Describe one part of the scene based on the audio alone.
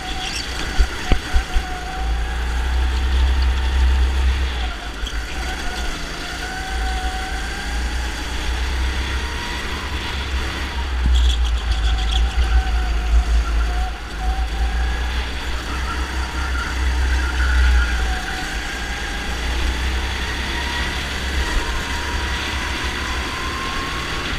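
Wind buffets loudly in a rough rumble.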